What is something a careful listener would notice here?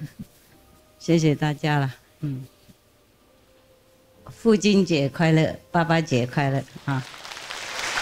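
A woman speaks into a microphone with animation, heard through loudspeakers.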